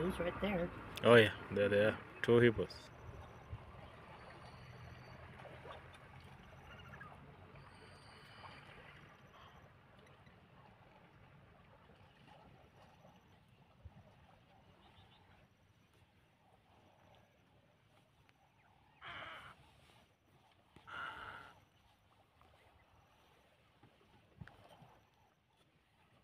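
Water laps gently against the shore.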